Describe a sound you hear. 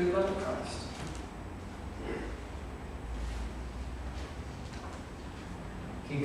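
A middle-aged man speaks calmly into a microphone in a large room, with pauses.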